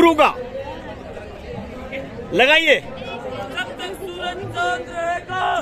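A group of teenage boys chatter and call out nearby outdoors.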